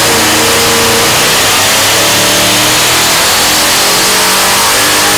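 A turbocharger whines shrilly.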